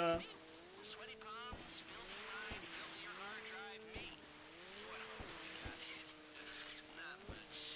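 Water splashes and sprays against a jet ski's hull.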